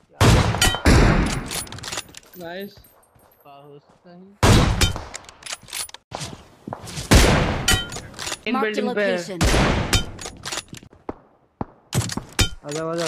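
Rifle shots ring out with sharp, loud bangs.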